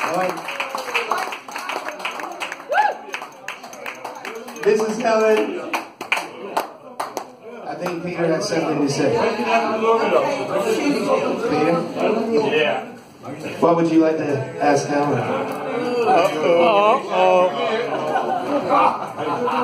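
A man sings into a microphone through a loudspeaker.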